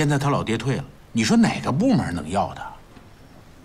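A middle-aged man speaks calmly and seriously nearby.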